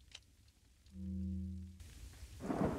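A short menu chime sounds.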